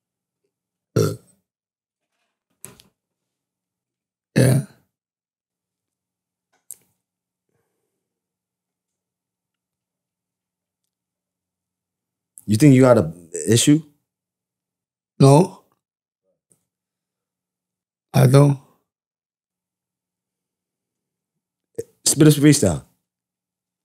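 A man speaks close to a microphone in short bursts, with pauses between them.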